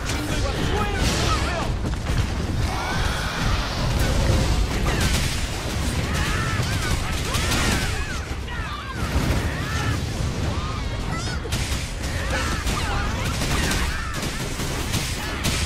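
Game combat effects clash and boom.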